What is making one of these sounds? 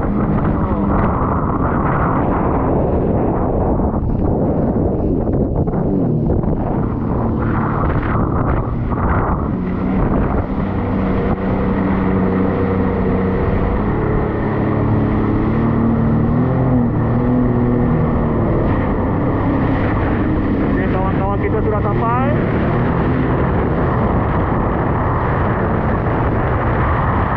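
A jet ski engine roars steadily up close.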